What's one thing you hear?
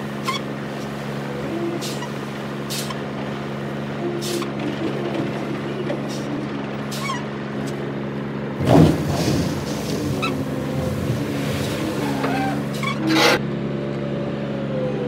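A heavy loader engine rumbles steadily nearby.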